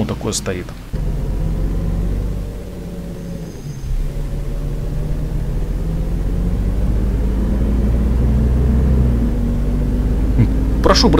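A bus engine pulls away and grows steadily louder as the bus speeds up.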